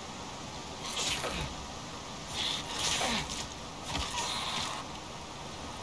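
A blade strikes a creature with sharp, wet hits.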